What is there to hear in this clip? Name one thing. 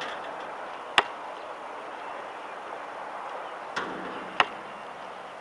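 A basketball thuds sharply on hard ground.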